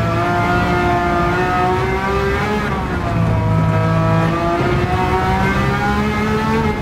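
A racing car engine roars loudly, its pitch rising and falling with the gear changes.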